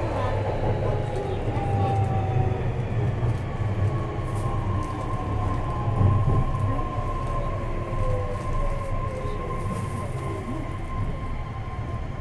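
A train's motor whines, rising and falling in pitch.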